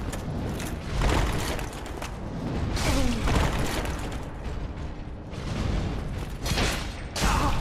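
Weapons strike against metal with heavy clangs.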